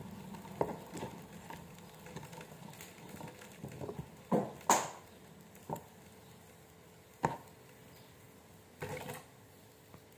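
Garlic skins crackle and rustle as fingers peel them.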